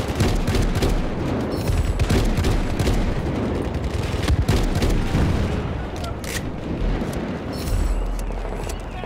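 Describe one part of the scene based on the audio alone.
A shotgun fires loud, booming blasts in quick succession.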